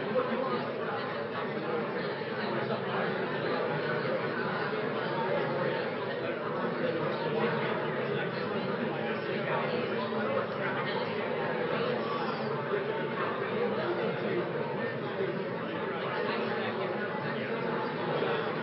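A woman speaks steadily into a microphone.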